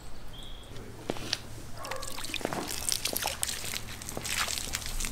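Water sprays hard from a hose onto paving.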